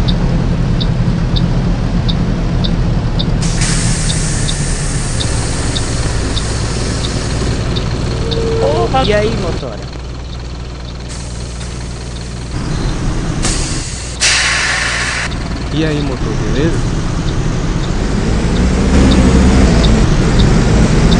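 A bus engine hums and rumbles steadily.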